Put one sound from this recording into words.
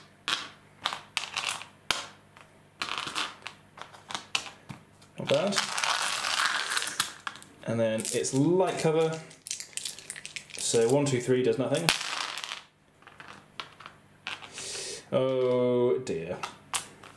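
Dice rattle and click as they are picked up and rolled onto a hard board.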